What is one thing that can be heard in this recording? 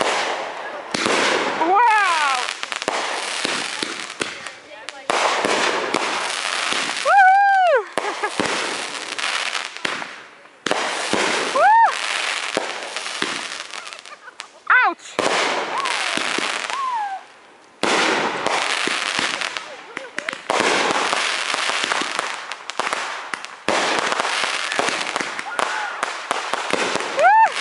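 Fireworks burst and crackle loudly overhead.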